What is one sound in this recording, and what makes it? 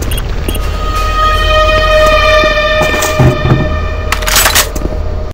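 A computer panel beeps with bright electronic tones.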